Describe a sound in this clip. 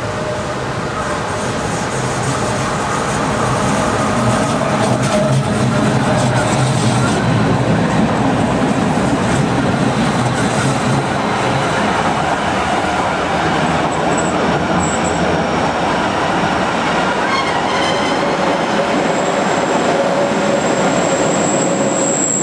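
Steel wheels screech and squeal on a curved track.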